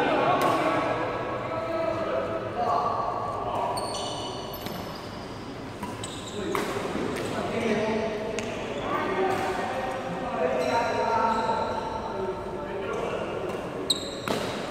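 Men talk casually nearby in a large echoing hall.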